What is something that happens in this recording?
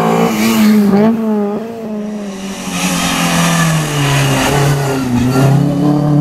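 A car engine drops in pitch as the driver shifts gear.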